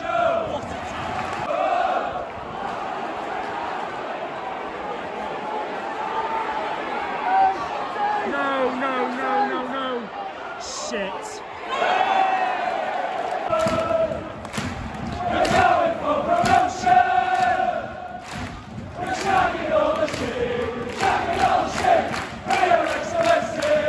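A large crowd of football fans sings and chants loudly outdoors.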